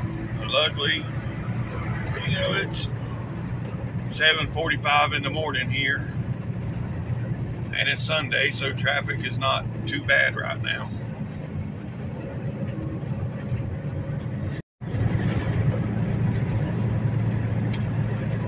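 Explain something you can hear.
Tyres rumble on a highway.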